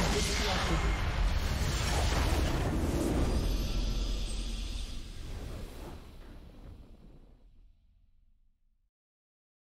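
A triumphant fanfare swells and then fades away.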